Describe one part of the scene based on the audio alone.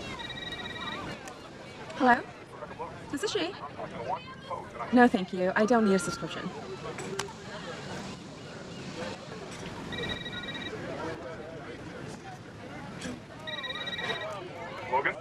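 A crowd murmurs and chatters in the background outdoors.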